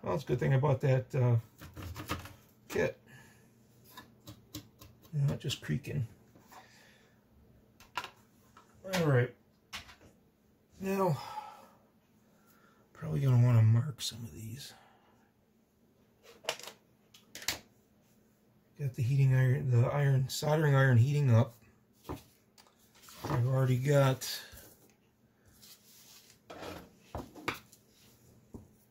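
A circuit board and plastic parts knock and rattle as they are handled on a wooden table.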